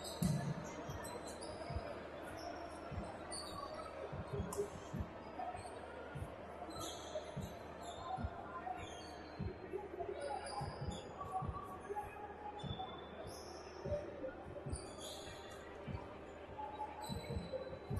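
A basketball bounces repeatedly on a wooden floor.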